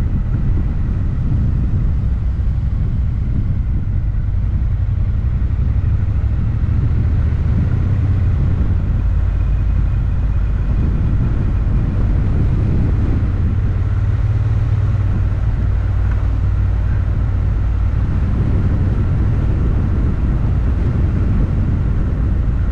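Wind rumbles loudly against the car, heard close up.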